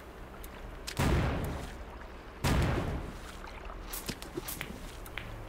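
A bomb explodes with a loud boom.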